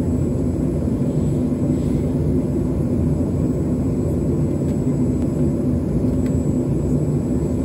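A jet engine rumbles steadily, heard from inside an aircraft cabin.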